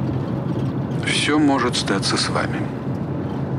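An elderly man speaks briefly and calmly nearby.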